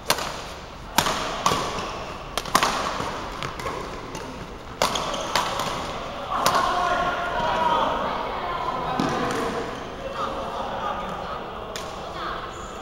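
Rackets smack shuttlecocks in a large echoing hall.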